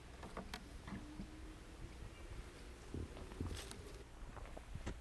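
A door hinge creaks slowly as a door swings open.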